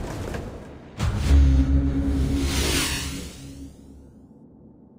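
A deep rumbling boom swells and fades away.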